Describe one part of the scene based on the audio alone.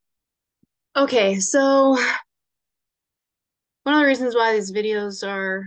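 A woman speaks calmly through a microphone, pausing between phrases.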